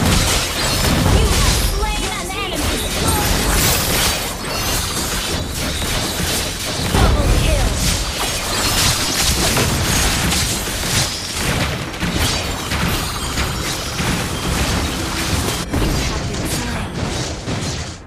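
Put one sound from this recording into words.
Game combat effects clash and burst over and over.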